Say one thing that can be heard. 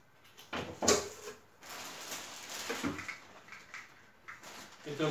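Plastic wrapping rustles and crinkles.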